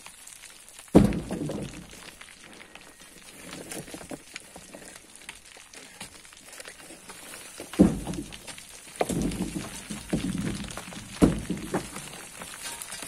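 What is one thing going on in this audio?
Loose soil and stones slide and tumble down a slope.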